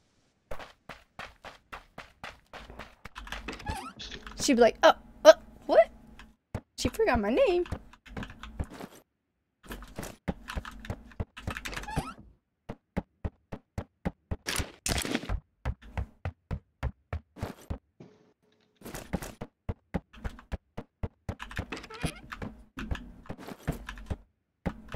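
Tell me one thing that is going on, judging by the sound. Footsteps thud steadily on hard floors.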